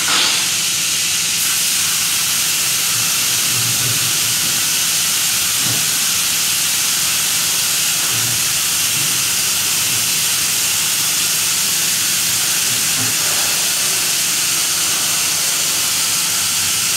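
A spray gun hisses steadily as paint is sprayed.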